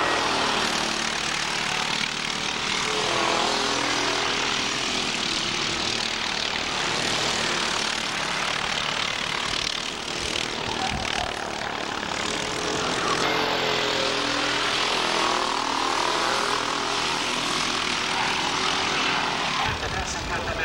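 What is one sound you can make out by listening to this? Kart engines whine loudly as they race past, rising and falling in pitch.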